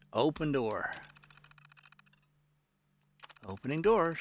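A computer terminal beeps and hums.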